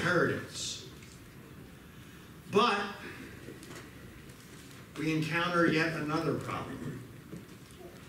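A middle-aged man speaks calmly into a microphone in an echoing room, with pauses.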